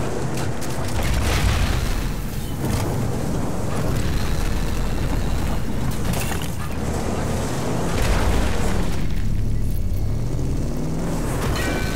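A vehicle engine rumbles steadily as it drives over rough ground.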